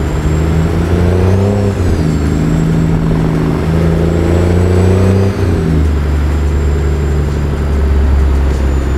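A truck's diesel engine rumbles steadily, its pitch rising and falling as gears shift.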